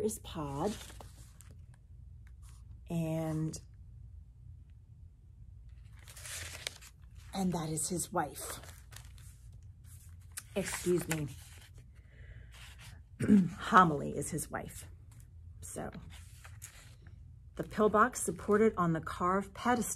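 A woman speaks calmly and close by, pausing between phrases.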